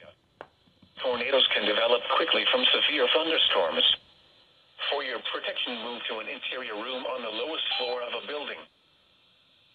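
A radio loudspeaker plays a voice reading out a warning.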